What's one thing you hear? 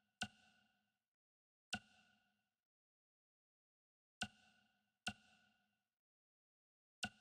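Short chiming menu clicks sound at irregular intervals.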